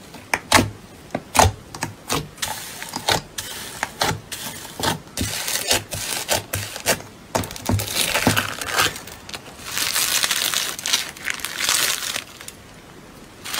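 Fingers poke and press into slime with sharp, wet pops.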